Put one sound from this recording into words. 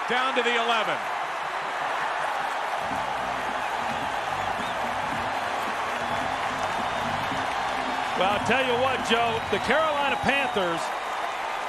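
A large crowd cheers and claps in a stadium.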